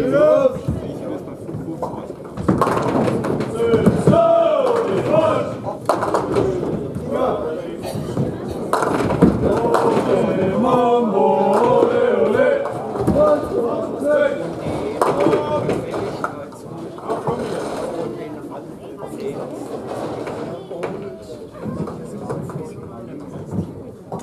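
Heavy balls rumble down wooden lanes.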